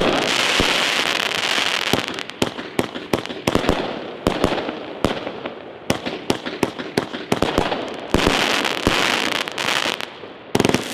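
Fireworks bang and pop in quick bursts.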